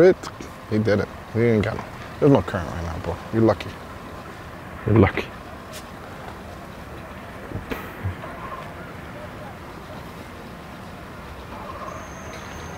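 Water laps gently against the dock and boats.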